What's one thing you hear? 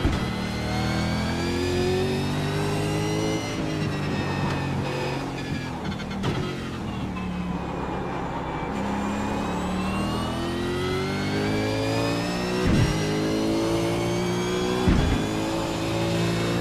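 A race car engine roars loudly, its pitch rising through the gears and dropping when braking.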